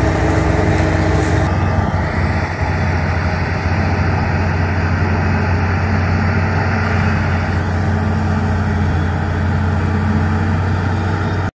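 Chopped stalks rush and hiss through a harvester's spout.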